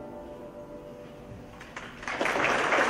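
A choir sings a final held note in a large hall.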